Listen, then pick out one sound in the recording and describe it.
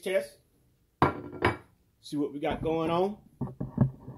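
A pan scrapes and clatters across a glass stovetop.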